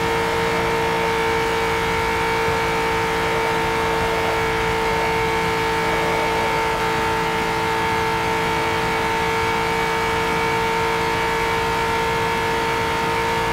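A racing car engine drones at a steady high pitch.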